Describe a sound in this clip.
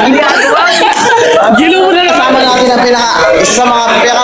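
A crowd chatters in the background.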